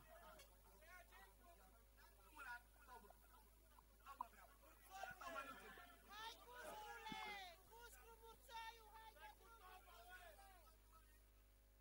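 A young man speaks with animation into a microphone, heard through a loudspeaker.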